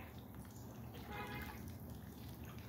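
A duck calls briefly.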